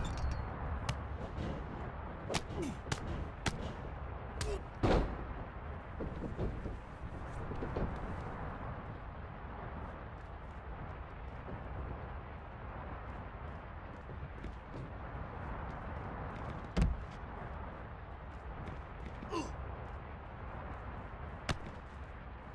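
Punches and body slams thud in a wrestling video game.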